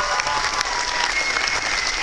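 An acoustic guitar plays a final chord that rings out.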